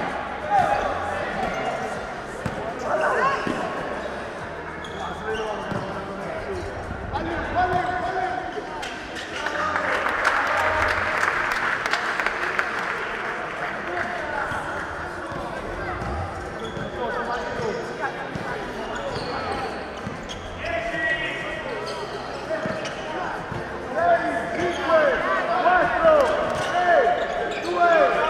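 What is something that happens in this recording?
Sneakers squeak sharply on a hard court, again and again.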